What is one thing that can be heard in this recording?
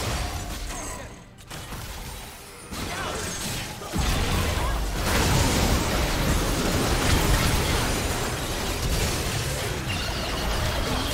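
Spell blasts and clashing weapons crackle and boom in a video game battle, growing louder and busier.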